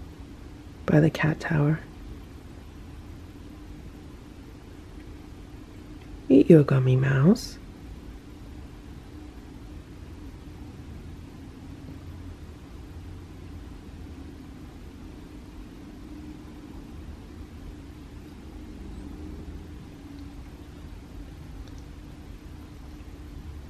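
A cat licks and laps at food softly.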